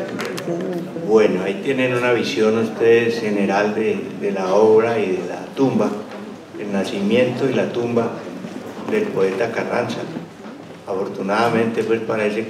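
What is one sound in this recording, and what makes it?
A middle-aged man speaks calmly into a microphone over loudspeakers in a large room.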